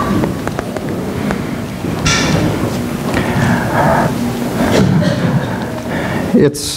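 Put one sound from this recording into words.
A middle-aged man speaks calmly in a reverberant hall.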